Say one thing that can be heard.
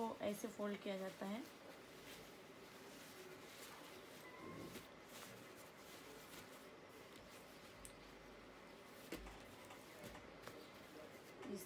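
Clothes rustle softly as they are folded.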